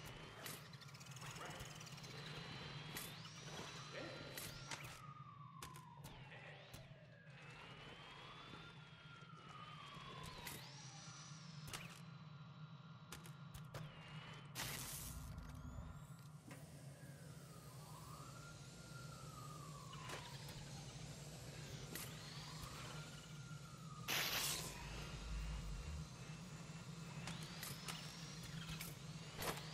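A small toy car bumps and clatters against hard surfaces.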